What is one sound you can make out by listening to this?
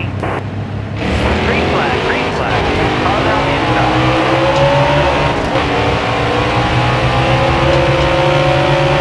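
Other race car engines roar close by.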